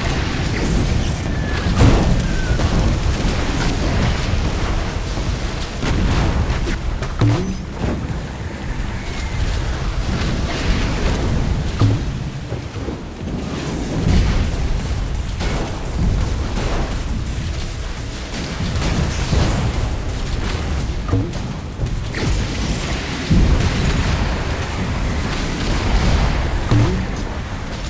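Water rushes and splashes against a speeding boat.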